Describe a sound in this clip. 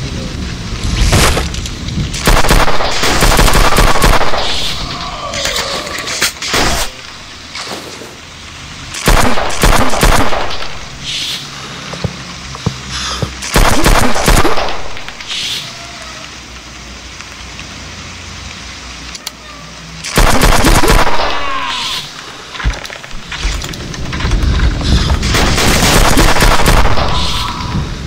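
Pistol shots ring out in loud bursts.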